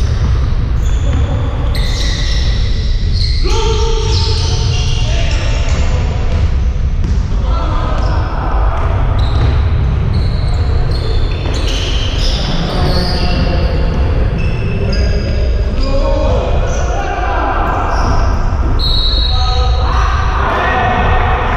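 Young men shout to each other across the echoing hall.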